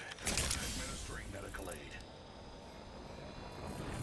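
A syringe device whirs and hisses as a dose is injected.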